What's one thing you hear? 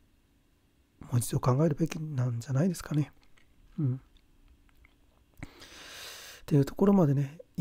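A man speaks close to a microphone in a calm, conversational way.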